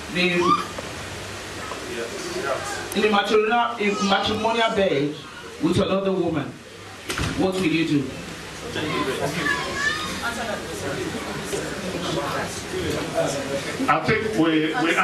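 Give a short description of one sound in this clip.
A woman speaks into a microphone over a loudspeaker, reading out in a large room.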